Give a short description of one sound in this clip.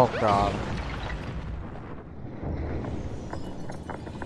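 A giant ice creature crashes and cracks apart.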